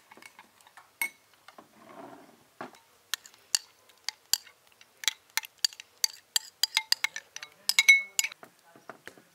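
A spoon clinks against a glass bowl as sauce is scooped out.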